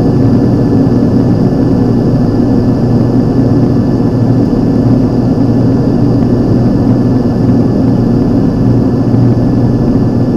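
A propeller aircraft engine drones loudly and steadily from close by.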